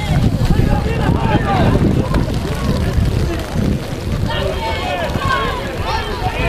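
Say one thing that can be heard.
Spectators shout and cheer outdoors, far off.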